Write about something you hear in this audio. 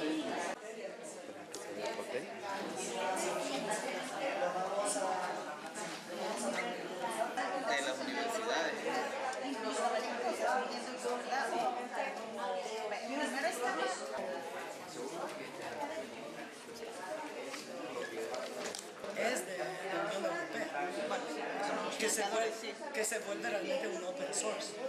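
Many adults talk at once around a room in a busy murmur.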